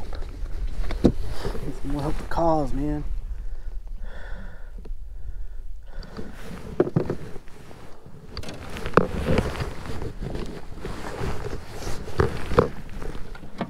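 Objects knock against a boat's hull.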